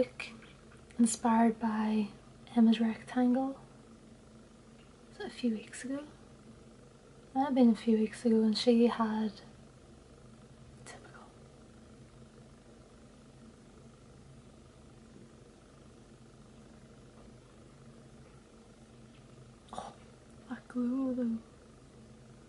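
A young woman talks calmly and closely into a microphone, with pauses.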